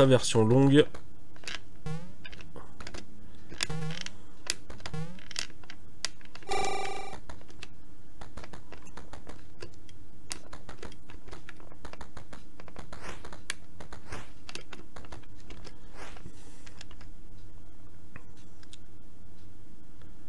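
Retro video game sound effects blip and beep.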